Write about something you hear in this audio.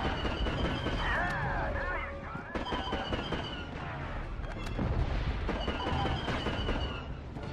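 Laser bolts whine and zip past.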